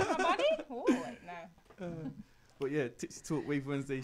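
A young woman laughs into a close microphone.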